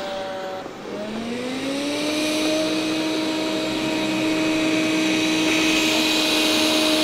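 A robot vacuum hums and whirs steadily, its motor pitch rising after a brief dip.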